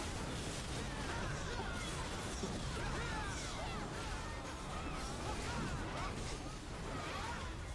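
Magic blasts burst with a whoosh.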